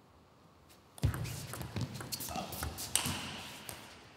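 A table tennis ball clicks quickly back and forth off paddles and the table in a large echoing hall.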